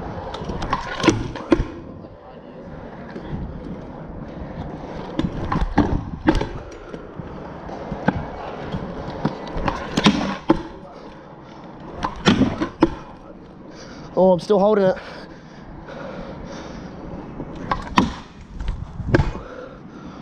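A scooter deck clacks and knocks as it lands on the ground.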